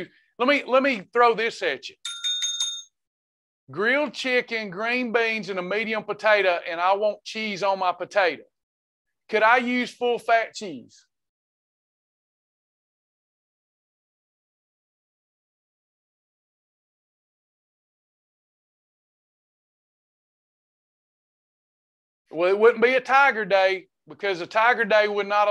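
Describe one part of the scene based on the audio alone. A man talks calmly through a microphone, with pauses.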